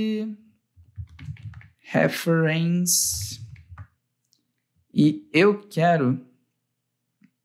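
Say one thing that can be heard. A young man speaks calmly and closely into a microphone, in short bursts.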